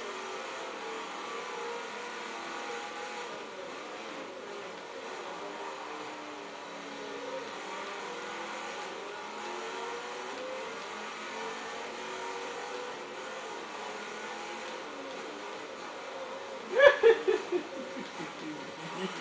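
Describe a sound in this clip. A racing car engine roars and shifts through gears.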